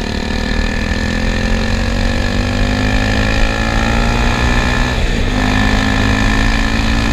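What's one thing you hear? A motorcycle engine revs steadily higher, dips briefly at a gear change, then climbs again.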